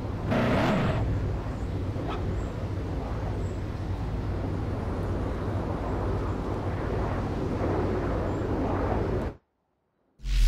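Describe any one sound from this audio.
A sports car engine rumbles and revs.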